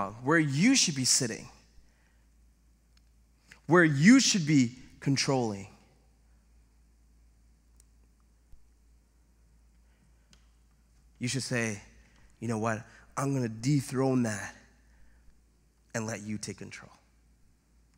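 A man speaks with animation through a microphone, with long pauses between phrases.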